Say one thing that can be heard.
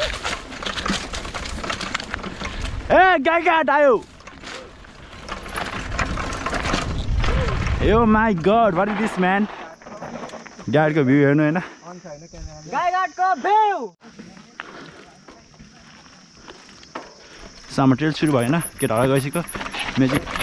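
Bicycle tyres crunch and rattle over loose dirt and gravel.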